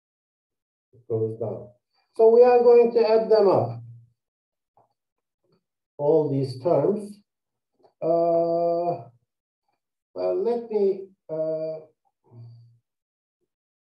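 A man speaks calmly and clearly into a close microphone, in short phrases.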